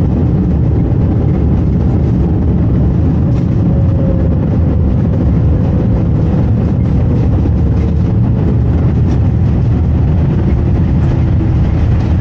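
A jet airliner rumbles loudly as it rolls down the runway and slows.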